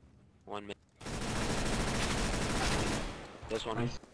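A gun fires a rapid burst of automatic shots.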